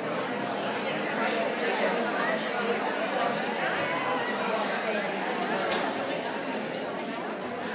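A crowd of men and women chat at once in a large echoing hall.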